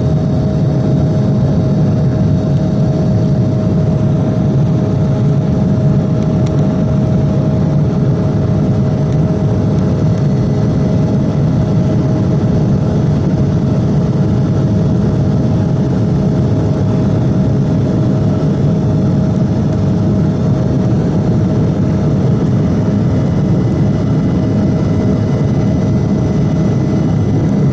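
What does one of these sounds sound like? A jet engine roars loudly and steadily, heard from inside an aircraft cabin.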